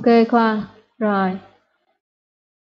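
A child speaks briefly and brightly through an online call.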